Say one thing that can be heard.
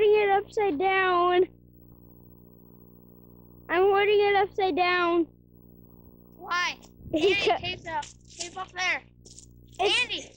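A child calls out with excitement close by.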